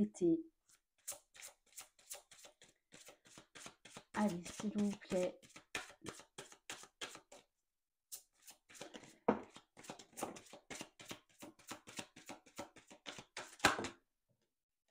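Playing cards riffle and flutter as they are shuffled by hand.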